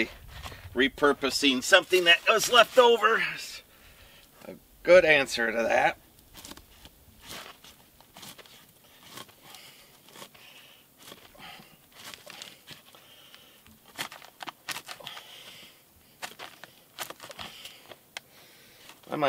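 Shoes scuff and crunch on dry dirt.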